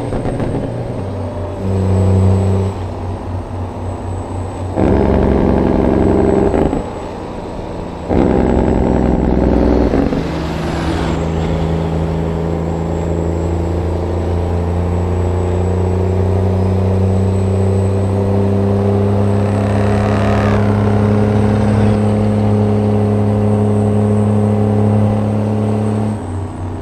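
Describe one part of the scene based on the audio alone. A truck engine drones steadily as the truck drives along.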